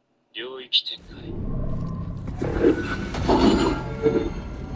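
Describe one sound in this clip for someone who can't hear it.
Footsteps scrape on a hard stone floor.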